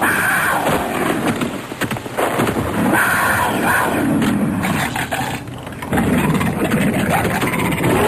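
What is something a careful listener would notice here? A robotic beast growls and snarls.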